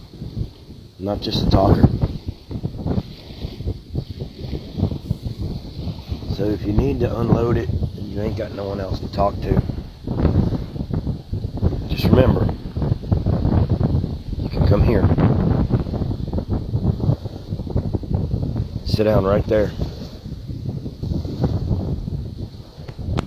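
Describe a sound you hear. A middle-aged man speaks calmly and earnestly, close to a microphone, outdoors.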